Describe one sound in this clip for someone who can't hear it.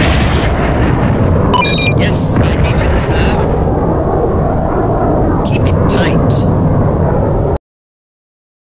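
Explosions rumble and crackle in a loud, steady roar.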